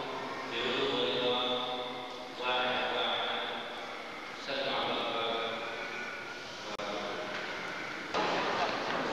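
A middle-aged man sings slow, long notes through a microphone in a large echoing hall.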